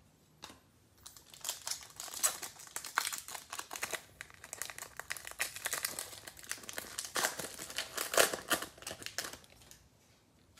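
A foil wrapper crinkles and tears as it is torn open.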